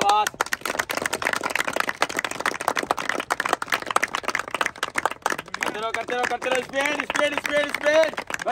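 A man claps his hands in a steady rhythm.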